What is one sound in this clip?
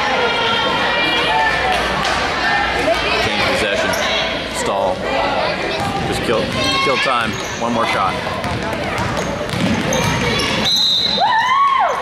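A crowd of spectators chatters in an echoing gym.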